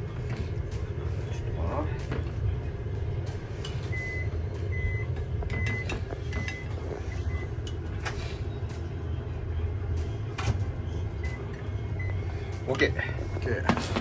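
A metal spoon scrapes and clinks against a ceramic bowl.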